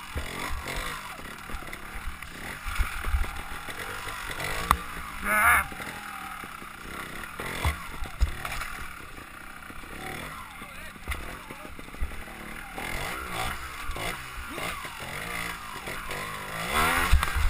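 A motorbike engine revs up and down close by.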